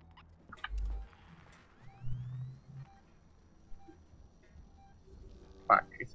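An electronic tracker beeps at a steady pace.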